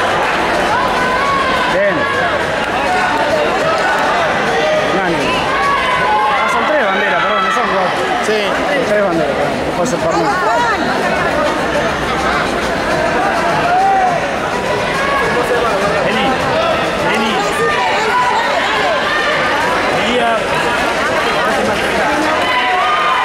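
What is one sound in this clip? A crowd of adults and children chatters all around in a large echoing hall.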